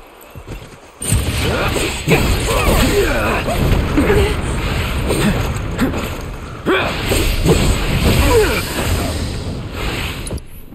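Game combat sounds clash, with swishing strikes and heavy impacts.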